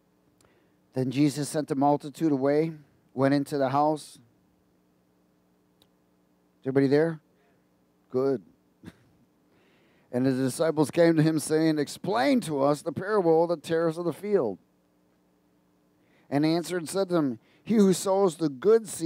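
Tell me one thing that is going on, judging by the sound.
A man speaks calmly through a headset microphone, pausing often.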